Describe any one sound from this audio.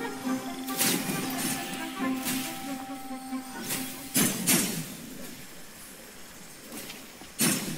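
Magical chimes sparkle and swirl.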